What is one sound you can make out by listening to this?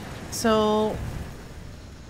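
A gun fires a sharp shot.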